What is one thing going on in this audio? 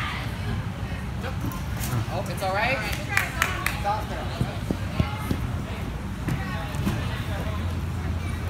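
A girl's feet thump on padded mats as she jumps and lands.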